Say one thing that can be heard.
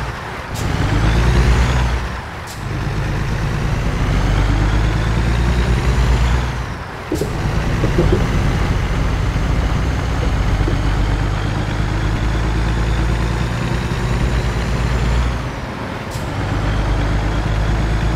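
A truck engine drones steadily, rising in pitch as it speeds up and dropping with each gear change.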